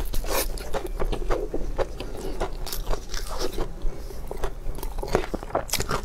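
Crispy food crackles as it is torn apart by hand.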